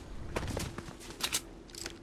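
Water splashes as someone wades through a lake.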